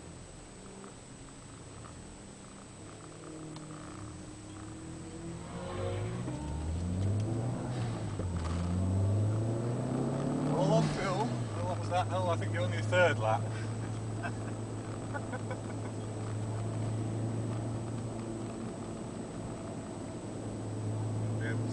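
A car engine revs hard, rising in pitch through several gear changes, then drones steadily.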